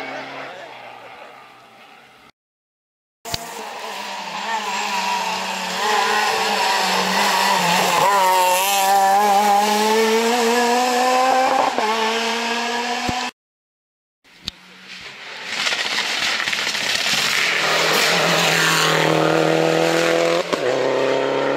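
A rally car engine revs hard and roars past up close.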